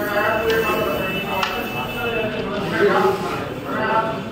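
Carrom pieces clack together as they are swept off a board.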